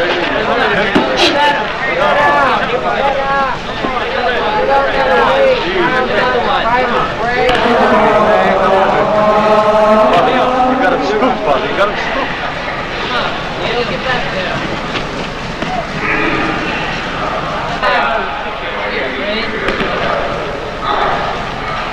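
Spectators murmur and call out.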